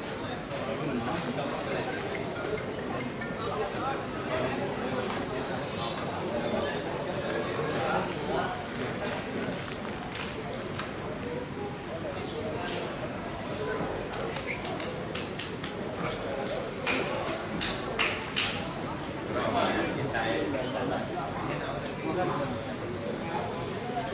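Men talk nearby in loud, lively voices.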